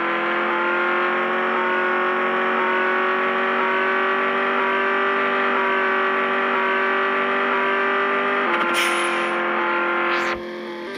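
A simulated sports car engine drones at a steady speed.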